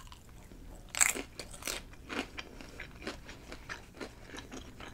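Crisp chips crunch loudly as a woman bites them.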